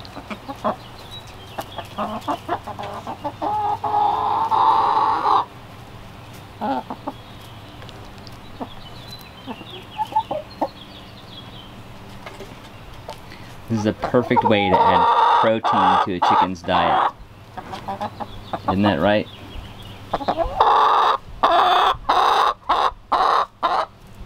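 Hens cluck and squawk close by.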